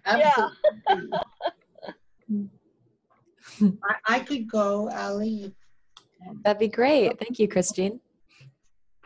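Several middle-aged women chat with animation over an online call.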